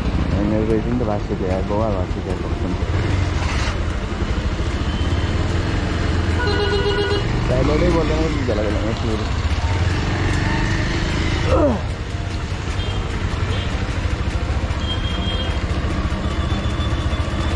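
Tyres hiss and splash on a wet road.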